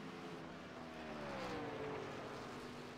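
A truck engine whooshes past, dropping in pitch.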